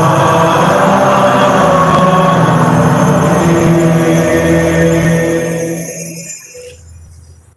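A man chants through a microphone in an echoing hall.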